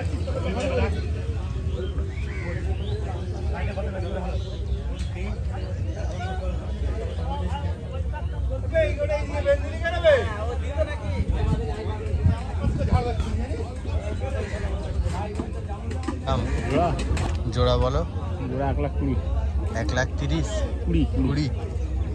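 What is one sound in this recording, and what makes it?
A crowd of men chatters nearby, outdoors.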